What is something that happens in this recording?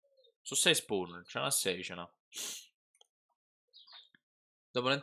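A young man speaks with animation close to a headset microphone.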